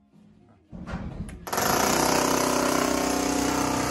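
A jackhammer pounds loudly into concrete.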